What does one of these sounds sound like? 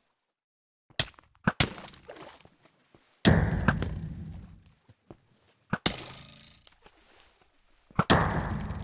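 A bow snaps as arrows are shot again and again.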